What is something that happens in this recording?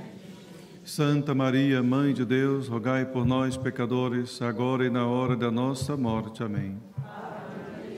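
A man chants a sung melody through a microphone.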